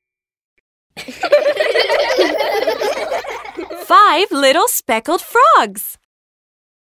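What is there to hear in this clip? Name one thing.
A young child's voice sings cheerfully.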